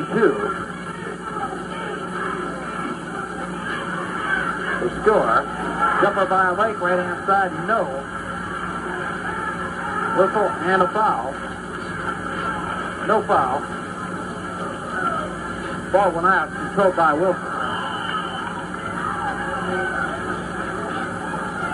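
Music plays from a stereo's speakers.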